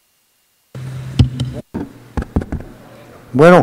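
A microphone knocks and thumps as a man handles it.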